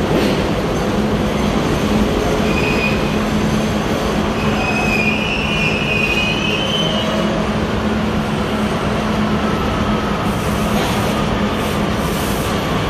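A subway train rumbles loudly as it approaches through an echoing underground station.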